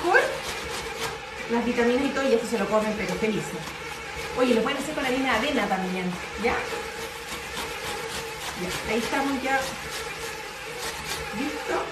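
A box grater rasps rhythmically against a vegetable.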